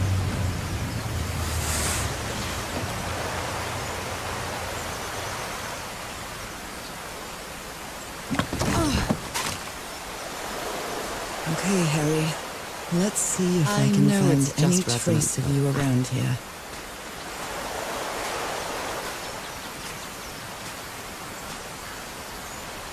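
Gentle waves lap against a sandy shore.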